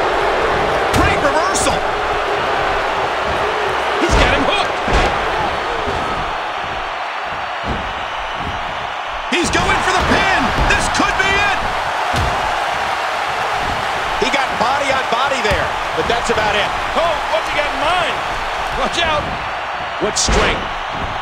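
Wrestlers' bodies thud hard onto the ring mat.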